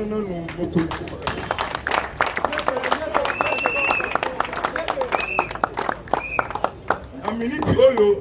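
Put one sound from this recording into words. A crowd applauds and claps.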